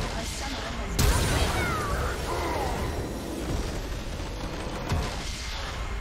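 A triumphant game fanfare swells.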